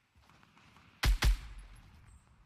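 A single gunshot cracks loudly.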